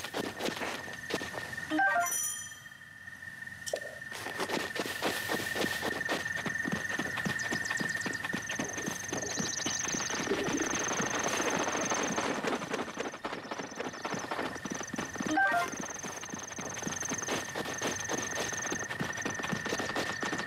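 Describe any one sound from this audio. Footsteps patter quickly through grass.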